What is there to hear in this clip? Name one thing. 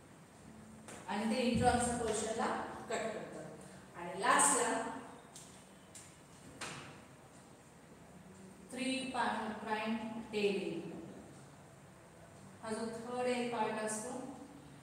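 A woman speaks clearly and steadily, as if teaching.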